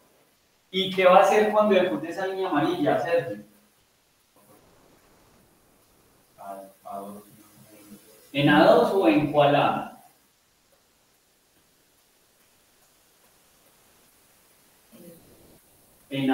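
A man speaks calmly and closely into a microphone, pausing between phrases.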